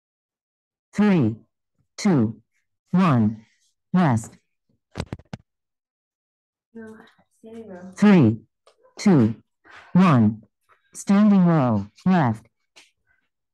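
A woman shouts out a count loudly over an online call.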